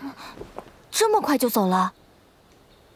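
A young woman speaks briefly.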